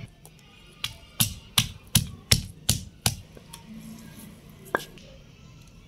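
A wooden pestle pounds rhythmically in a stone mortar, with sharp knocks.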